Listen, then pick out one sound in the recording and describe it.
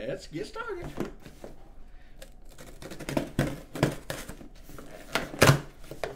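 A pen scratches on cardboard.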